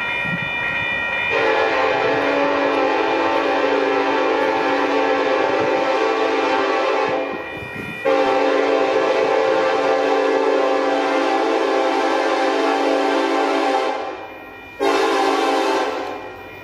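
A freight train rumbles along the tracks.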